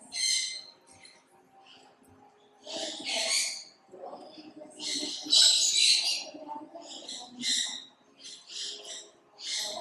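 Water sprays from a hose nozzle in short hissing bursts.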